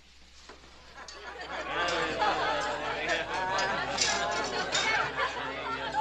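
A crowd of men and women chatter and call out loudly together.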